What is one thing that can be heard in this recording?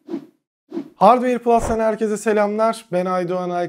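A young man speaks calmly and cheerfully close to a microphone.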